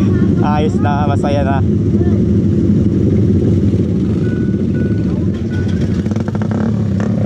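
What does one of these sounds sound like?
Motorcycle engines rumble and idle close by.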